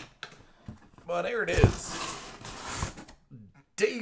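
Cardboard box flaps rustle and scrape as they are opened.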